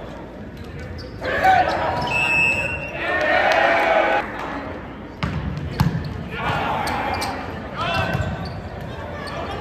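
A volleyball is struck hard by hand.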